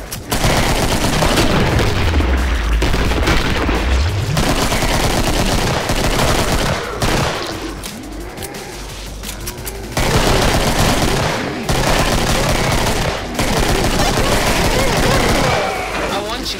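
Pistols fire in rapid bursts of shots.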